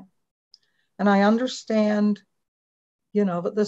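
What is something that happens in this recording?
An older woman answers briefly over an online call.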